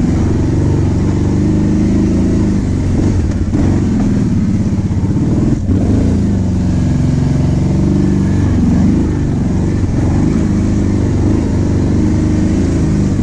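Tyres crunch and bump over rough, dug-up soil.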